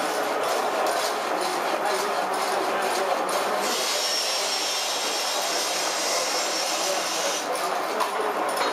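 A frame saw cuts through a log with rapid, rhythmic rasping strokes.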